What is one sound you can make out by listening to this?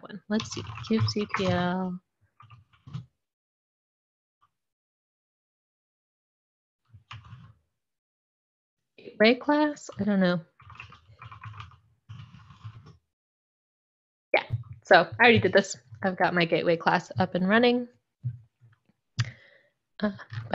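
A young woman speaks calmly into a close microphone, with pauses.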